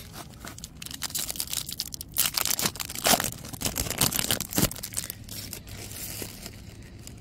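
A plastic wrapper crinkles as it is peeled open.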